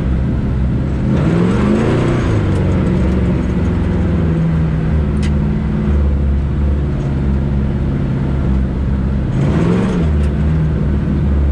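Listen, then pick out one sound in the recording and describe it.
A truck engine revs up and falls back as the gears change.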